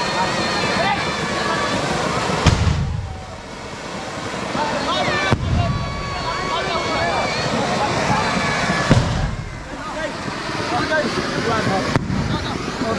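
A crowd of people shouts and chatters outdoors.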